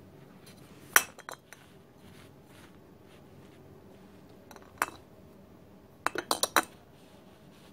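Metal canisters knock and clink against a hard surface.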